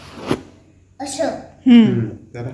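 A small boy speaks in a high voice.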